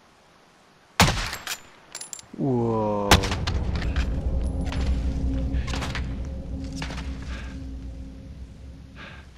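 Gunshots crack nearby in short bursts.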